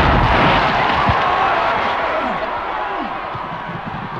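A heavy boulder rolls and grinds across sand.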